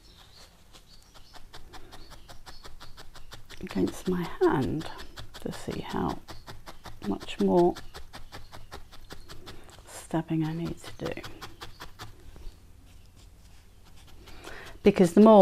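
A felting needle pokes rapidly into wool over a foam pad.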